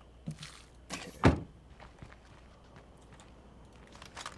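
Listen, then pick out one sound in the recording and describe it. A car door opens and thuds shut.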